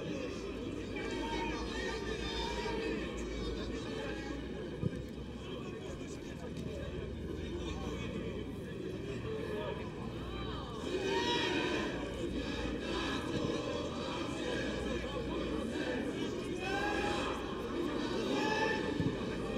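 A stadium crowd cheers outdoors.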